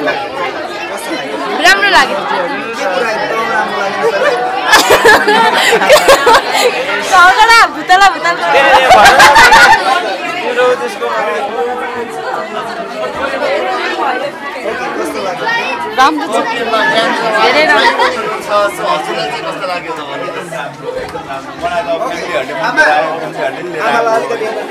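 A crowd of people chatter and laugh around.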